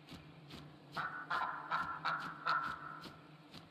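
A goose honks.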